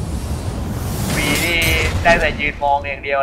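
A fireball bursts with a roaring whoosh.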